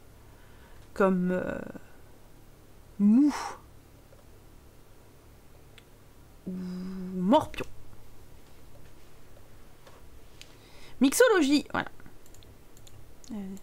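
A young woman speaks in short bursts close to a microphone, with animated, sing-song intonation.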